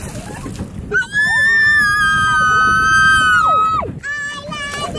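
A young girl squeals loudly with delight.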